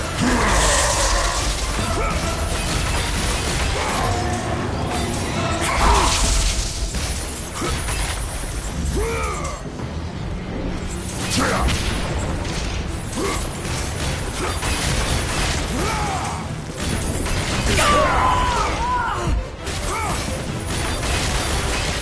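Chained blades slash and strike a giant creature again and again.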